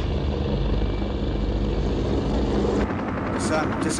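Helicopter rotors thump and roar overhead.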